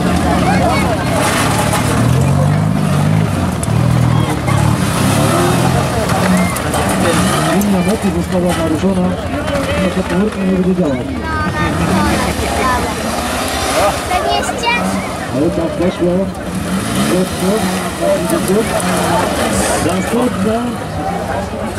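A small engine roars and revs hard.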